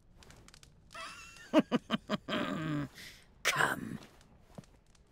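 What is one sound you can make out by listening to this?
An elderly woman cackles and speaks briefly.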